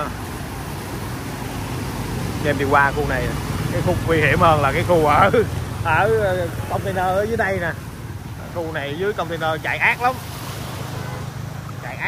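Motorbike engines hum as they ride through a flooded street.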